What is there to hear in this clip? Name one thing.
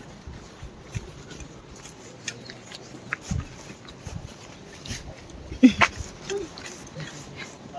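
Footsteps crunch on a wet road.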